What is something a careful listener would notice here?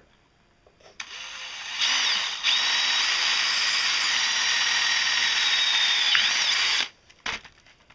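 A cordless drill whirs steadily, boring through metal.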